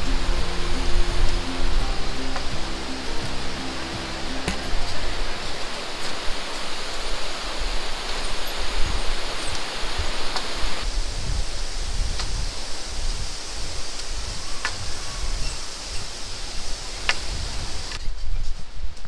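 A river rushes over rocks below.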